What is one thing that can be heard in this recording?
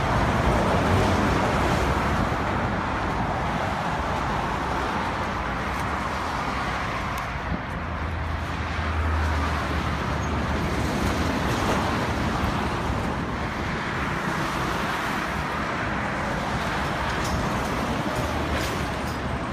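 Wind blows across a microphone.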